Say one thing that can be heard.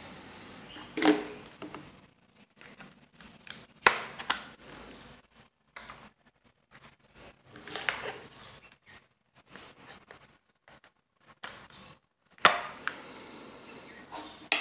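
Plastic parts of a toy airplane clack and click as they are handled and snapped together.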